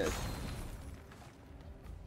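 Rocks crash and clatter.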